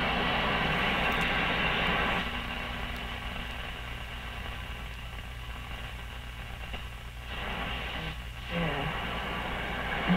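Static hisses and crackles from an old radio as a tuning knob turns between stations.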